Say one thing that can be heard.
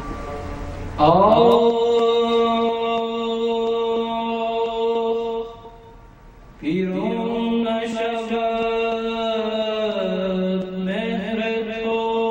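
A young man sings into a microphone, in long held notes.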